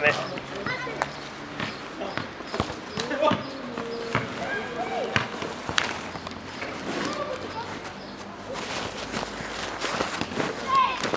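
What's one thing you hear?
A basketball bounces on hard asphalt outdoors.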